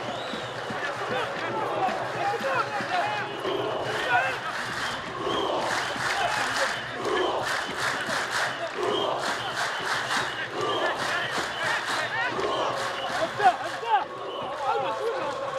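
A crowd cheers and chants from stands outdoors.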